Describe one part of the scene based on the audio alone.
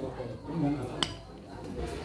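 A metal spoon clinks against a plate.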